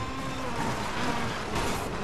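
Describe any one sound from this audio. Tyres screech as a racing car corners.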